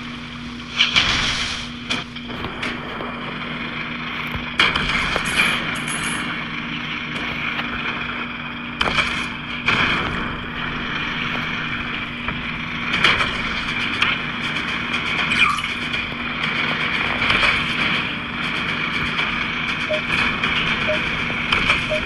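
Cannon shots boom now and then.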